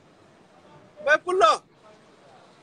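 A man shouts loudly nearby, twice in quick succession.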